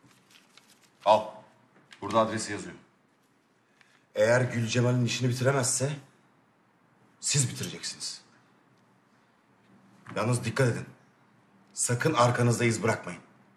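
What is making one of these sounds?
A man speaks firmly and sternly close by.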